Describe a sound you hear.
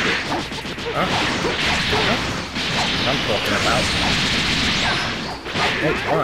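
Energy blasts whoosh and crackle in a game fight.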